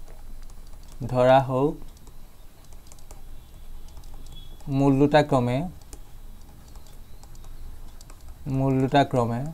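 A young man speaks calmly and slowly in short phrases, close to a microphone.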